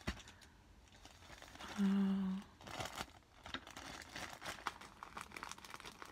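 Scissors snip through a plastic bag.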